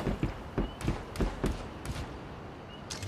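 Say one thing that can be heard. Footsteps thud quickly on a hard floor.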